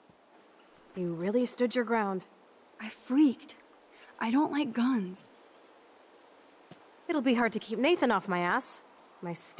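Young women speak calmly, close by, taking turns.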